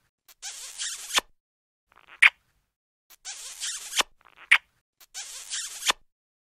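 Wet kissing smacks repeat in quick bursts.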